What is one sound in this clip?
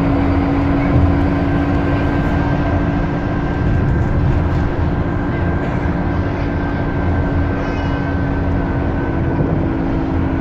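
A bus engine hums steadily while the bus drives along.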